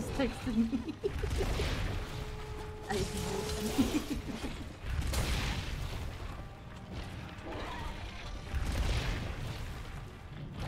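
Explosions roar and crackle.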